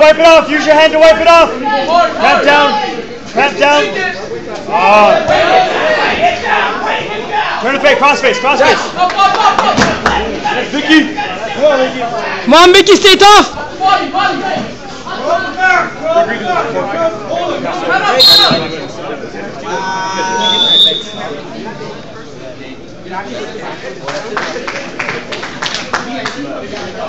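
A crowd of young men and women shouts and cheers loudly nearby.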